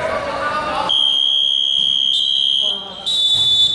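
A referee blows a whistle in a long shrill blast.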